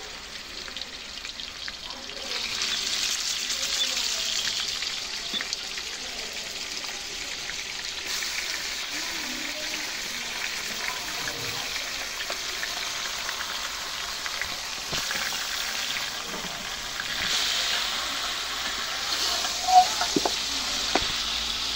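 A wood fire crackles beneath a pot.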